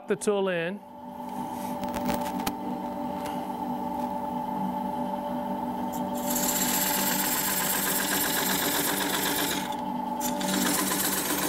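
A gouge scrapes and hisses against spinning wood.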